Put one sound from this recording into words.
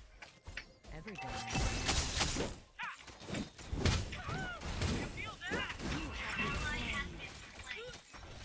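Swords clash and magic blasts burst in a fast fight.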